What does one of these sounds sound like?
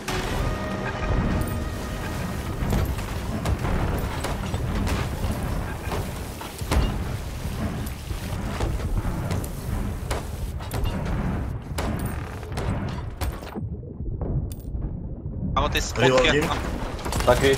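Water sloshes.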